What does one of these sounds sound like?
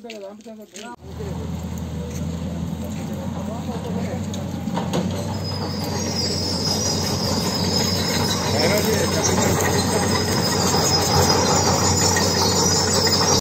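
A crowd of men chatter outdoors.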